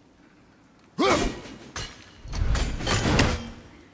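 An axe strikes wood with a heavy thud.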